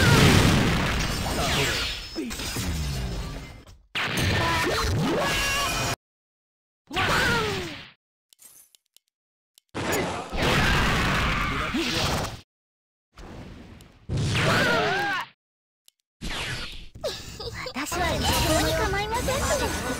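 Game spells whoosh and crackle during a fight.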